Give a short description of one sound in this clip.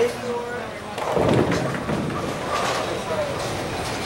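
Bowling pins crash and clatter as the ball strikes them.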